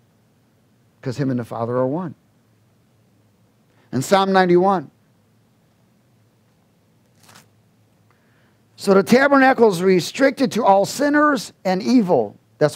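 A middle-aged man speaks with animation through a headset microphone, with pauses.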